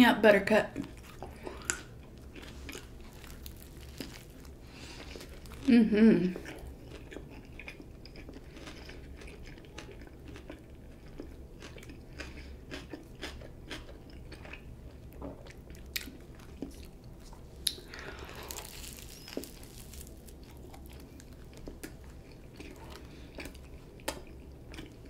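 A woman chews a sandwich with wet, smacking mouth sounds close to a microphone.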